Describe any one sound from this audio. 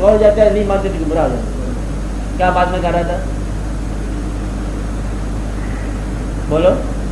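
An older man speaks calmly and slowly, with pauses, heard through a microphone over a low hum.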